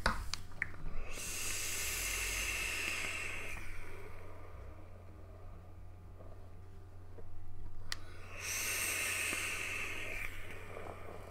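A vape device crackles and hisses as a man draws on it.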